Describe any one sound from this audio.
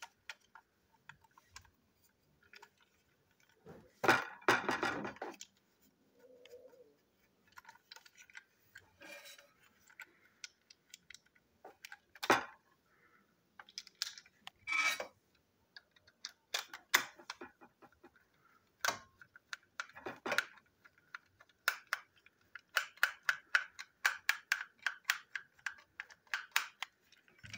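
Small plastic parts click and clatter in someone's hands.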